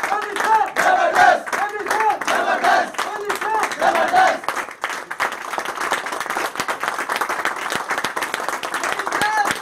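A group of men clap their hands steadily.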